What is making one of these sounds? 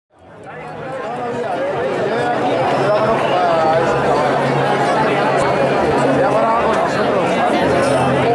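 A man sings through loudspeakers.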